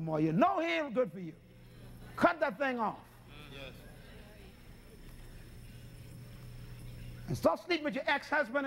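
A man preaches with animation through a microphone, pausing between phrases.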